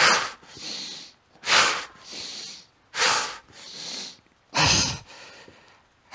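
A man breathes hard in rhythm, puffing out forcefully and drawing in air between lifts.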